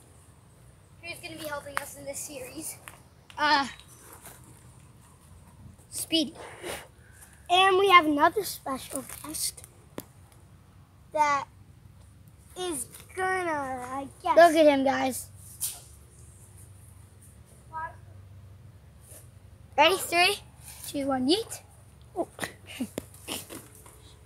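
A boy talks with animation close by, outdoors.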